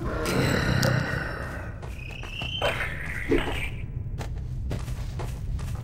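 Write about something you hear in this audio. A zombie groans and moans nearby.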